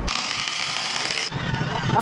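A cordless drill whirs.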